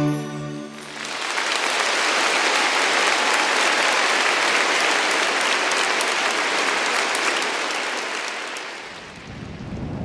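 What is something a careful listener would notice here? A large crowd applauds and cheers in a big hall.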